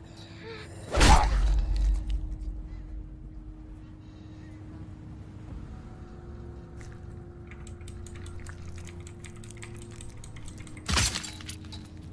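A blade strikes into flesh with a heavy thud.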